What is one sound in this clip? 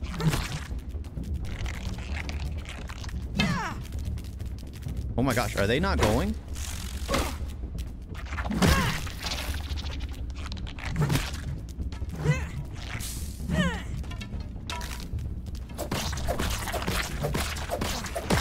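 A spear strikes an ant with sharp thuds.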